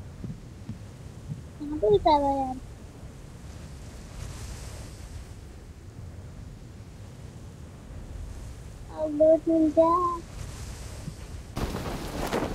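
Wind rushes steadily past a parachute.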